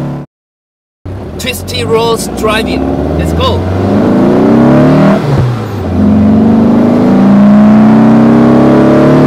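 A car engine rumbles and revs loudly.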